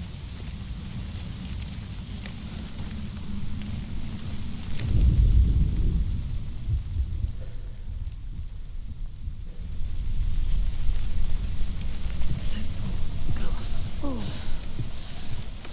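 Wind gusts with a deep, steady rumble.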